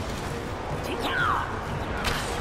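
An arrow whooshes through the air.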